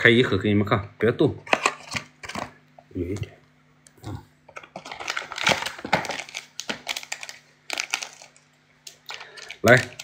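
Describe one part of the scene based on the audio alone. A cardboard box and a plastic sachet rustle and crinkle as hands open them.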